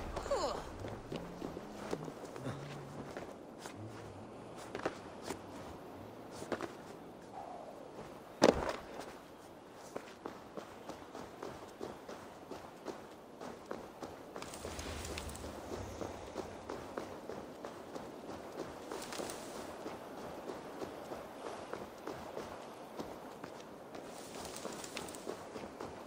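Footsteps crunch over grass and rough ground.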